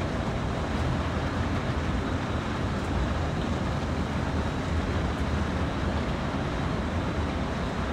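A diesel locomotive engine rumbles steadily from inside the cab.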